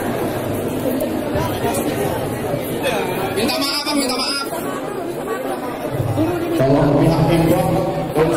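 A crowd of men and women talk and shout over one another nearby.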